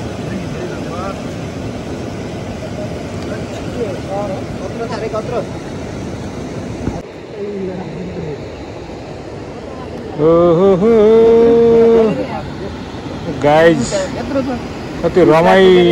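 A young man talks loudly and with animation close by.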